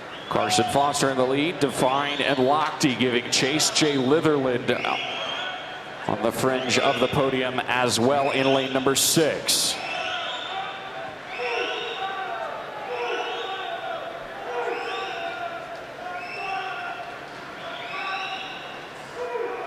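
Swimmers splash through water.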